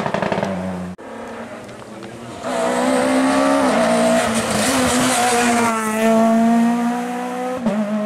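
A second rally car engine screams closer and revs up and down as the car passes.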